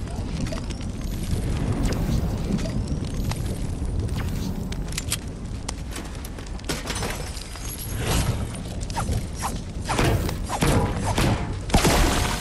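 A campfire crackles nearby.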